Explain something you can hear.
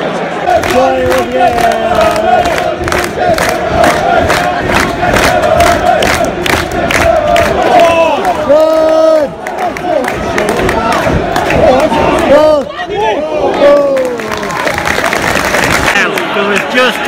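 A large stadium crowd sings and chants loudly outdoors.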